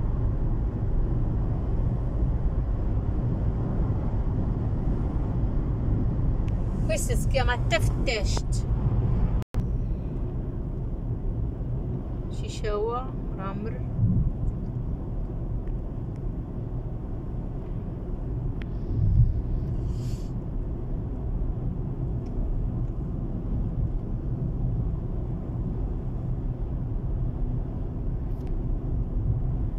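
A car engine hums steadily with road rumble while driving.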